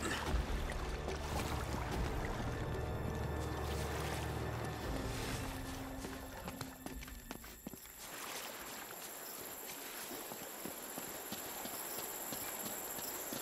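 Footsteps crunch over grass and rock.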